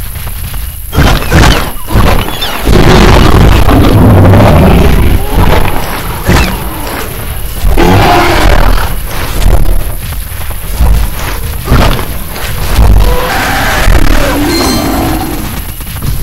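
A large dinosaur roars loudly in bursts.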